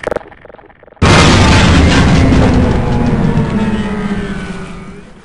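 A loud explosion booms and rumbles away slowly.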